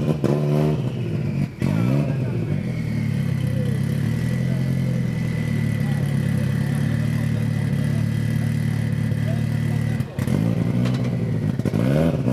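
A car engine revs up sharply in short bursts.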